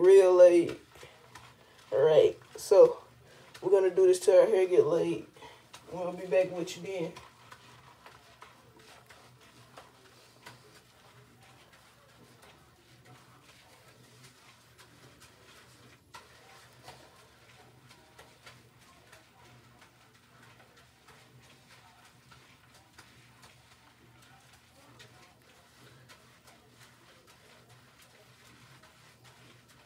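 Hands rub lather into wet hair with a soft squishing.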